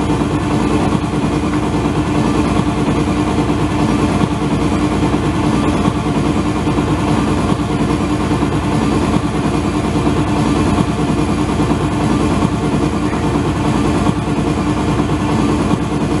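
Loud music plays throughout in an echoing room.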